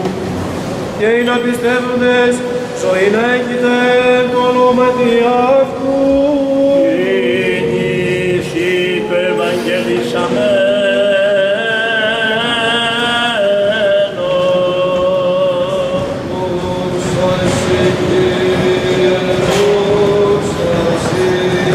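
A man chants solemnly in a large echoing hall.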